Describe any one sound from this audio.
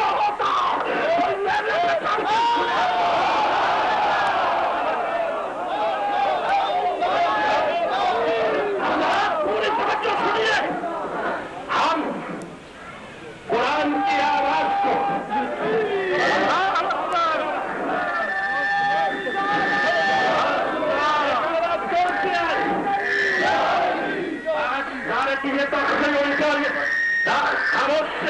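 A large crowd of men chants loudly outdoors.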